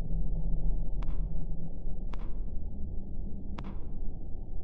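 A heavy metal object thuds onto the ground.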